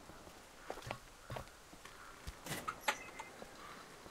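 A heavy sliding door rumbles and bangs open.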